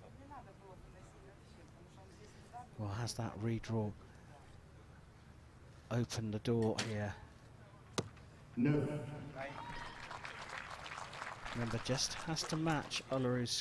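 An arrow thuds into a target.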